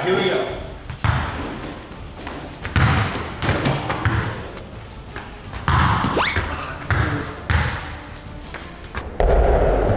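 A ball thumps against a backboard and floor, echoing in a large room.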